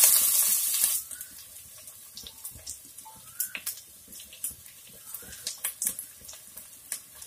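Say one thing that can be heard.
Onions sizzle and crackle softly in a pot.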